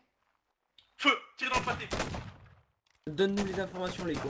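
Muskets fire with sharp cracks.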